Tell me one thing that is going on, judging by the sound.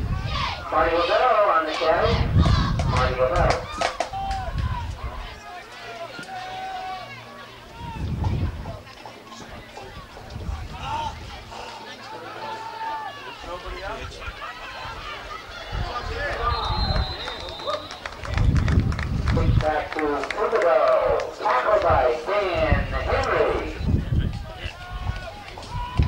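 Young men shout across a field.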